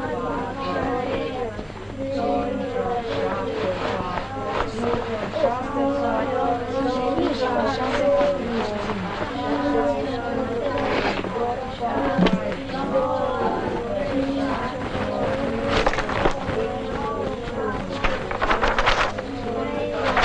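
Paper rustles as pages are handled.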